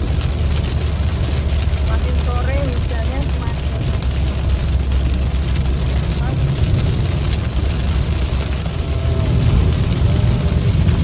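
Heavy rain patters steadily on a car windshield.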